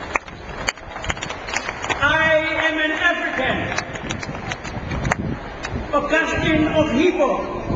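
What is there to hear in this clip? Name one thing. An elderly man speaks slowly and calmly through loudspeakers outdoors.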